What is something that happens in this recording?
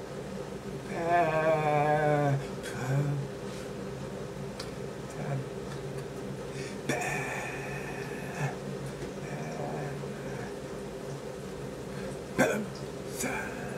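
A middle-aged man talks expressively, close to a microphone.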